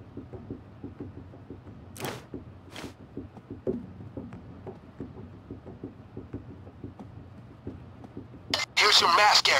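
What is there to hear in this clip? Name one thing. Footsteps tread steadily on a hard floor.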